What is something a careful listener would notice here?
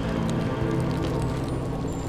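Flames crackle softly.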